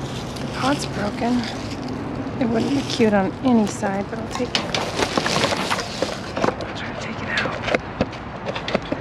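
Plastic sheeting rustles and crinkles as a pot is moved over it.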